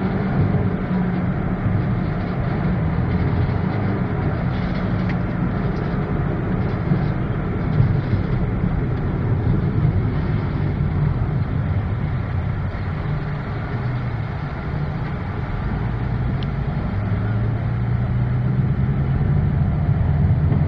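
A truck engine drones close by.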